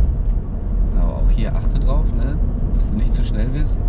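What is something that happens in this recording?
A man talks with animation close by inside a car.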